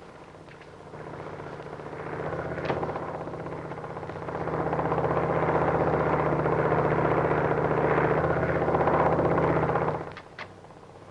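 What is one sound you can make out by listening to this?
A twin-engine propeller plane drones overhead.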